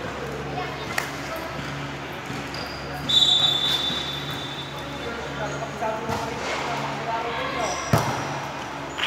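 A volleyball is struck with a sharp smack in a large echoing hall.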